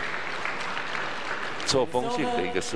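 A crowd cheers and murmurs in a large echoing hall.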